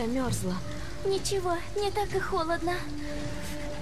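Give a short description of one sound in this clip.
A young girl answers quietly.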